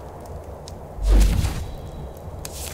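A game spell bursts with a deep magical whoosh.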